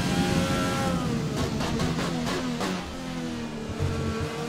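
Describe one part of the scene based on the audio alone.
A racing car engine falls in pitch and crackles as the car brakes hard.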